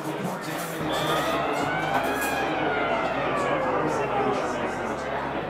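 A goal horn blares from a hockey video game.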